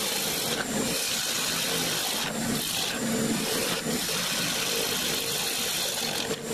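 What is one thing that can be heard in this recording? A wood lathe spins with a steady hum.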